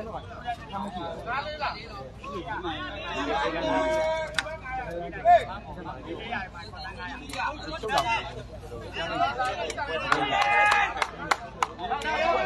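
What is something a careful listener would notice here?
A large outdoor crowd chatters and shouts excitedly.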